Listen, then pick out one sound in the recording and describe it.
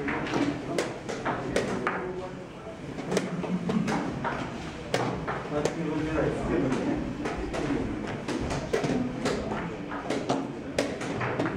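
Chess pieces click down on wooden boards.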